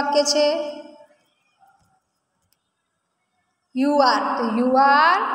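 A young woman speaks calmly, heard through a phone microphone in an online call.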